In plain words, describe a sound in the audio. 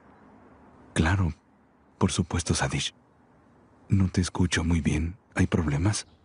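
A man talks quietly and calmly on a phone.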